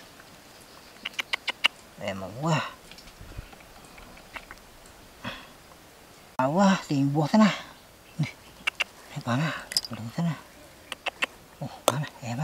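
Garden clippers snip through plant stems with sharp clicks.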